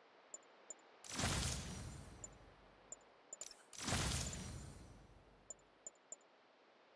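A deep whoosh swells and slowly fades.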